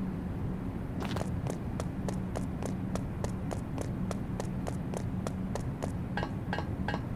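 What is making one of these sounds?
Quick footsteps patter evenly on a hard floor.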